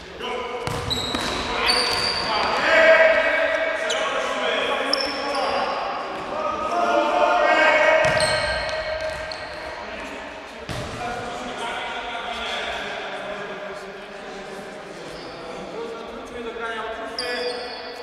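Sports shoes squeak sharply on a hard floor.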